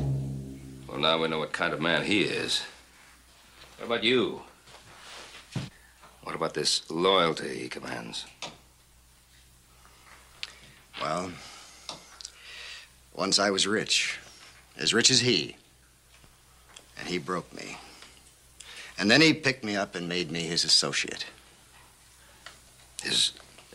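A middle-aged man speaks firmly nearby.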